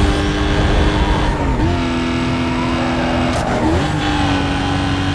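Tyres hiss on the road at speed.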